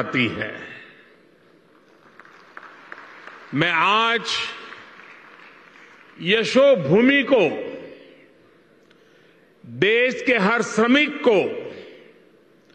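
An elderly man speaks slowly and deliberately into a microphone, in a reverberant hall.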